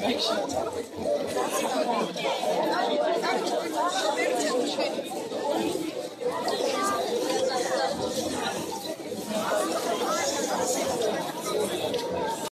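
A large crowd of adults and children chatters and calls out nearby outdoors.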